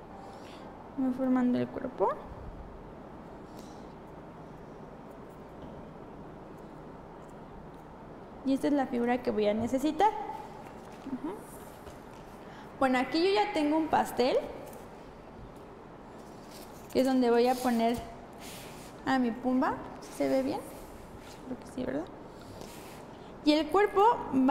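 A young woman speaks calmly through a microphone, in short bursts with pauses.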